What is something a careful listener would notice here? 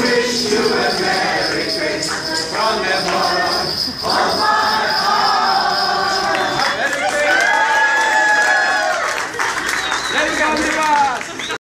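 An older man sings loudly.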